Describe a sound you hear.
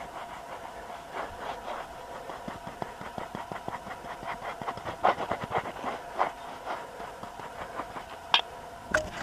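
A small scraper rasps and scratches over gritty stone in quick strokes.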